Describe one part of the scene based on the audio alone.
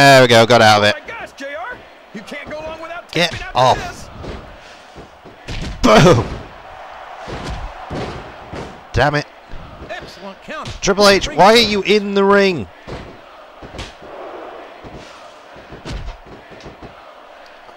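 Blows land with heavy thuds as wrestlers hit the mat.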